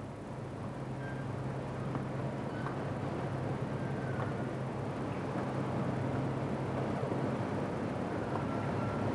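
A large metal machine rumbles and hums steadily as it turns.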